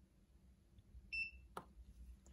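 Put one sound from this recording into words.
A digital scale gives a short beep as a button is pressed.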